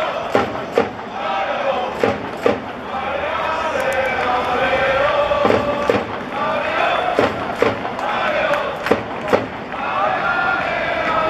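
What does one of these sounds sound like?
A large crowd of fans chants and sings loudly in an open stadium.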